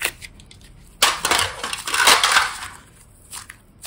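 Soft clay rustles and squishes as hands knead it.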